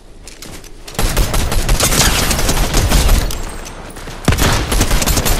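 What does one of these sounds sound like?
Rapid gunfire rattles close by.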